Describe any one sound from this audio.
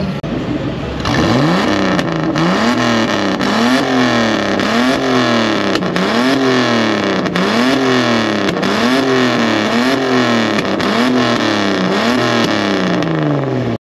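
A second car engine revs rapidly again and again, its exhaust booming and popping.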